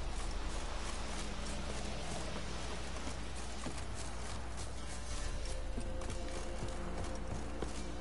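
Footsteps run over grass and wooden boards.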